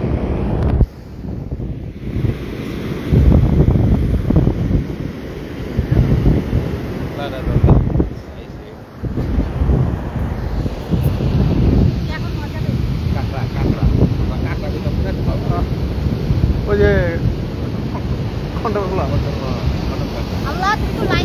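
Waves break and wash up onto a beach.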